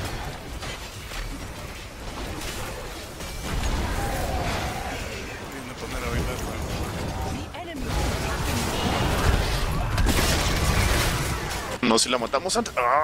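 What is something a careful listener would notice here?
Magic blasts and clashing weapons crackle in a busy fight.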